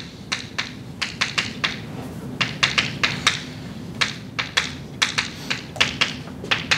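Chalk taps and scrapes quickly on a blackboard.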